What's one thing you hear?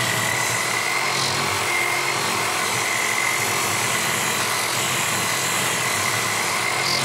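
Wood rasps against a spinning sanding disc.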